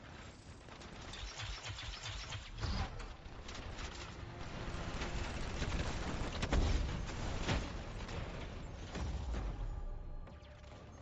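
Rapid gunfire rattles and bursts in short volleys.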